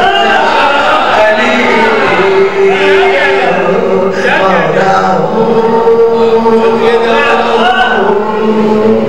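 A man sings a mournful lament loudly into a microphone, heard through a loudspeaker.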